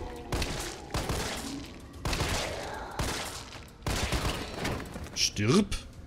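Gunshots ring out loudly in quick bursts.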